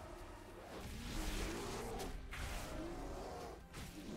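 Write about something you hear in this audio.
Magic spells whoosh and chime in a fight.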